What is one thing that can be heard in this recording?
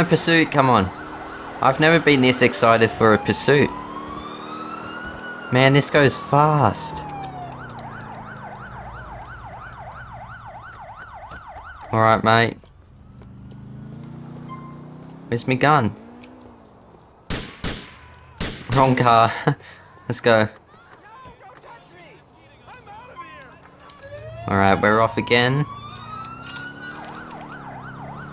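A police siren wails and yelps in bursts.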